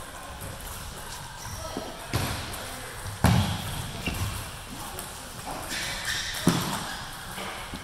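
A table tennis ball clicks back and forth off paddles and a table.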